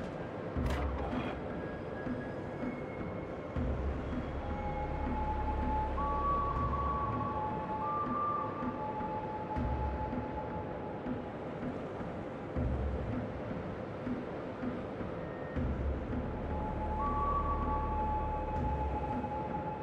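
Heavy naval guns fire in deep, booming salvos.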